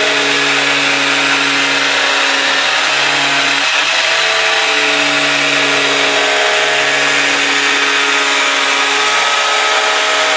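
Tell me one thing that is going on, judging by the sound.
An angle grinder whines loudly as it cuts.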